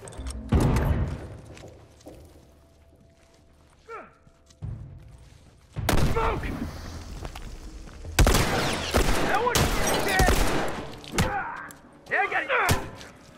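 A heavy weapon thuds against a body.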